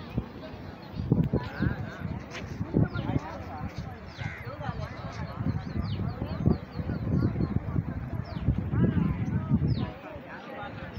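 Men talk loudly nearby outdoors.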